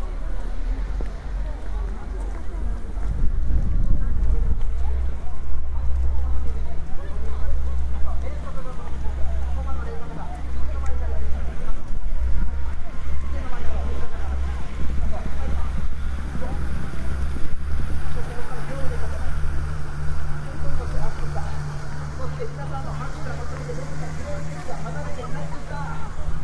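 A crowd chatters throughout in a wide open outdoor space.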